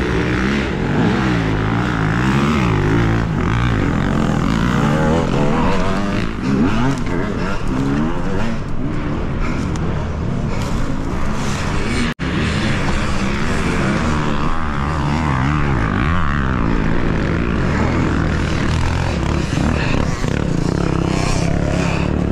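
Knobby tyres spin and scrabble on loose dirt and leaves.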